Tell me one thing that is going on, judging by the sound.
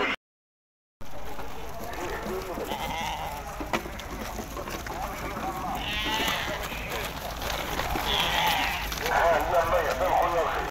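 Sheep hooves shuffle on dry ground.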